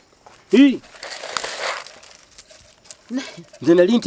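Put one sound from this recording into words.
Dry bean pods rustle and crackle as hands shell them.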